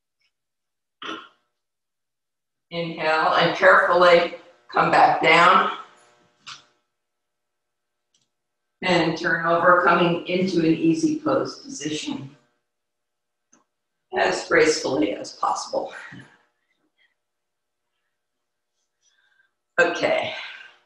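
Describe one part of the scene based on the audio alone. A woman speaks calmly and clearly into a close microphone, with pauses between phrases.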